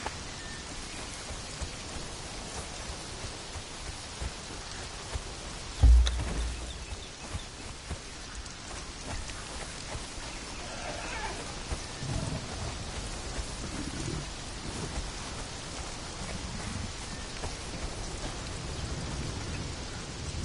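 Footsteps swish through tall grass and leafy plants.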